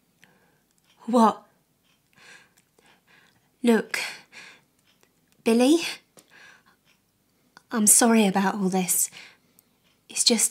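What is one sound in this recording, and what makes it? A young woman speaks tearfully in a breaking voice, close to the microphone.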